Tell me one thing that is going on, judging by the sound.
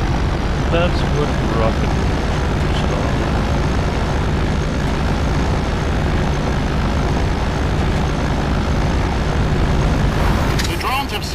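Tyres crunch over loose sand and gravel.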